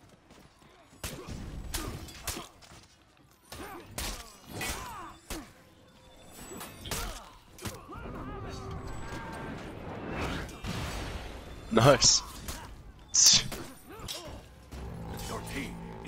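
Swords clash and clang repeatedly in a fierce battle.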